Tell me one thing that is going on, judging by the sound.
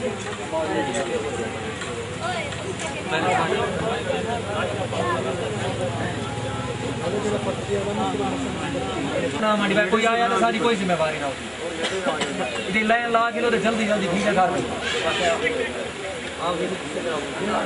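A crowd of men talk over one another nearby.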